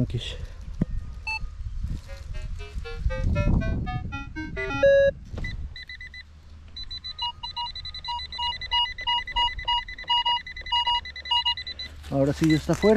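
A metal detector gives rising electronic tones, then beeps steadily.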